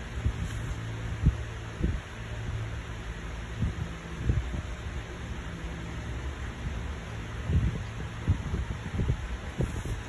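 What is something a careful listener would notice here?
Fingers click on a laptop touchpad.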